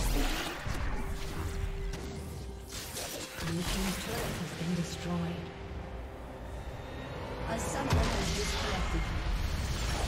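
Game spell effects crackle and whoosh in a fight.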